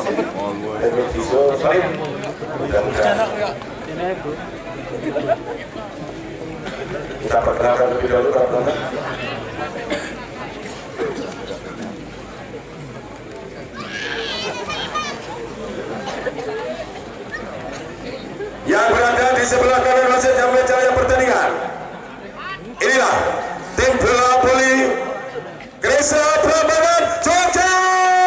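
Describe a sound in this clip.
A large crowd chatters and cheers outdoors.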